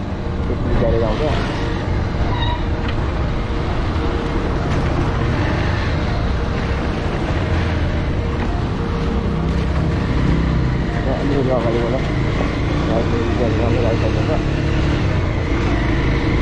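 Tyres roll over a wet, bumpy road.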